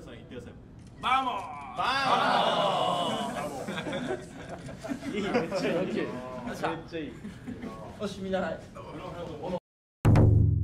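A group of young men cheer and shout together loudly.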